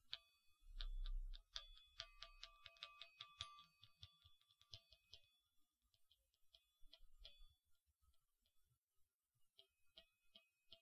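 Metal balls clink and chime softly close to a microphone.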